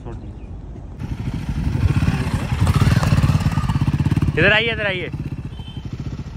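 A motorcycle engine revs louder as the motorcycle rides away.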